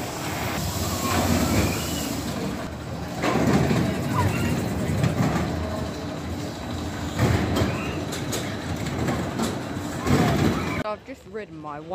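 A roller coaster car rumbles and rattles along its track.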